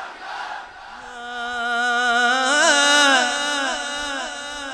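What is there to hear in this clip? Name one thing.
A man chants melodically through a microphone.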